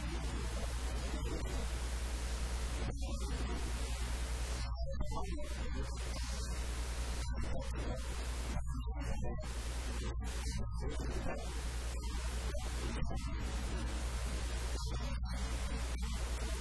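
A man speaks with animation through a microphone and loudspeakers.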